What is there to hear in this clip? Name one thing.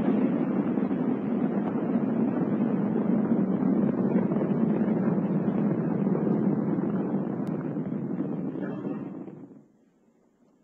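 A rocket engine roars with a deep, steady rumble.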